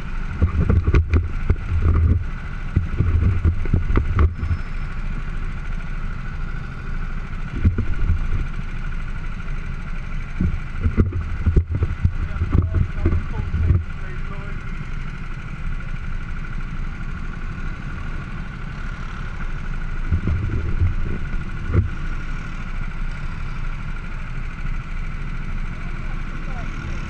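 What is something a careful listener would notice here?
A go-kart engine hums steadily close by.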